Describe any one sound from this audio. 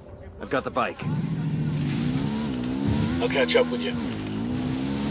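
A dirt bike engine starts and revs steadily.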